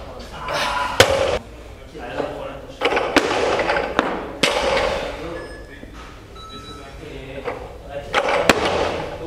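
A loaded barbell drops and bangs onto the floor with a ringing echo in a large hall.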